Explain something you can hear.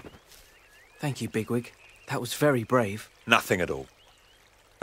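A young man speaks nervously.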